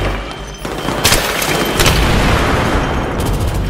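An explosion booms and debris clatters.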